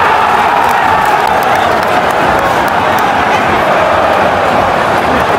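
A large stadium crowd chants and roars loudly all around.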